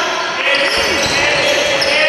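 A man shouts from the sideline.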